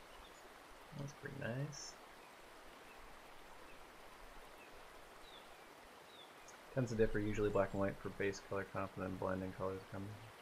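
A young man speaks casually into a nearby microphone.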